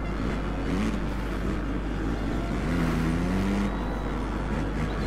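A motorcycle engine revs and whines loudly, rising and falling in pitch.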